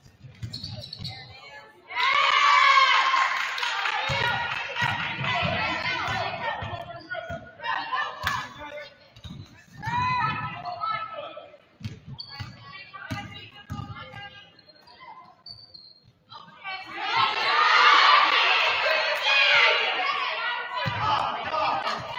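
Spectators in an echoing gym shout and cheer loudly.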